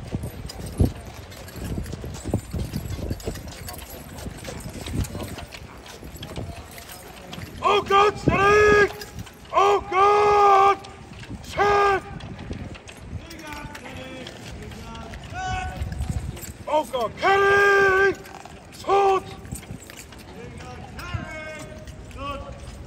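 Horses' hooves shift and scrape on gravel.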